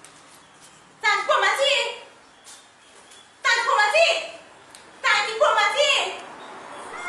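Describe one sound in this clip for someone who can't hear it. A woman shouts angrily at close range.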